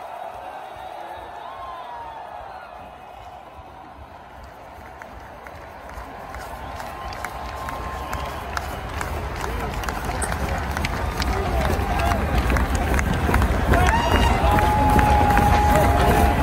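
A huge stadium crowd cheers and roars, swelling louder.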